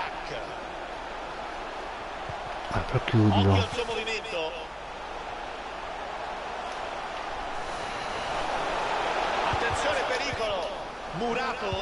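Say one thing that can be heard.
A crowd murmurs and cheers.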